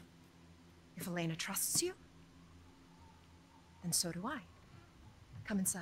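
An elderly woman speaks calmly and quietly, close by.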